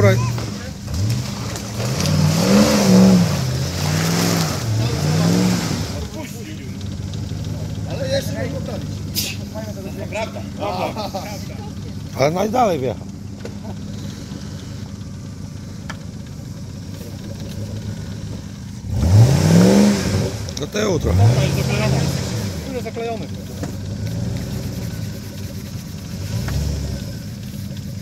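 Tyres churn and squelch through thick mud.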